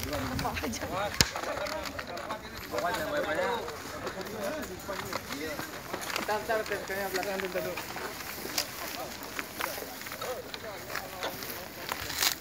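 Several men talk over one another nearby, outdoors.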